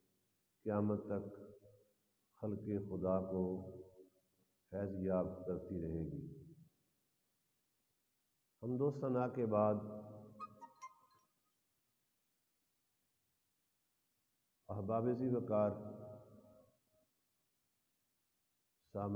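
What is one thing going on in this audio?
An elderly man speaks slowly and calmly into a microphone, in phrases with pauses between them.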